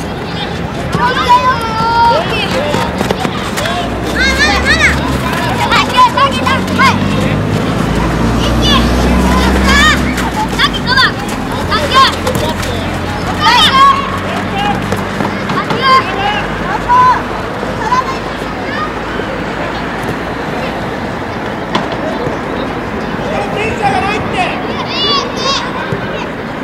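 Children shout and call out across an open field.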